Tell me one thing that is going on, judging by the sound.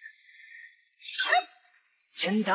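A magic burst whooshes and sparkles.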